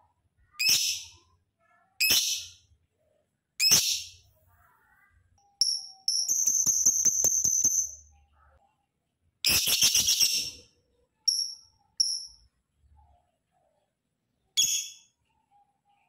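A lovebird chirps loudly and shrilly in short bursts, close by.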